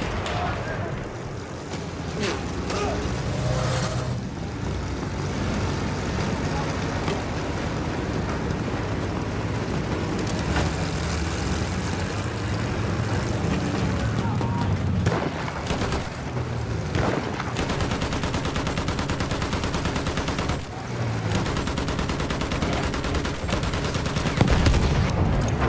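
A tank's tracks clank as it moves.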